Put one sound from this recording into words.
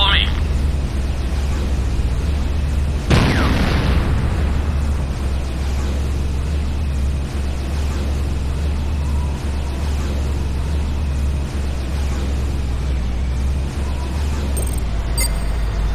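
A vehicle engine hums steadily with a crackling electric buzz.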